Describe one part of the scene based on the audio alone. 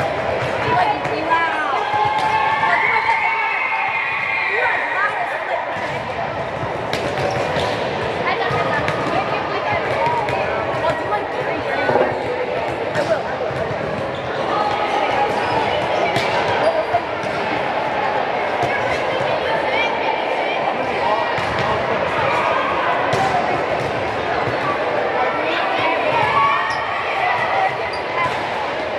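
Girls shout and call out across a large echoing hall.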